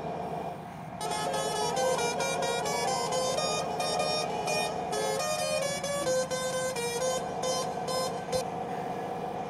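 Music plays from a radio.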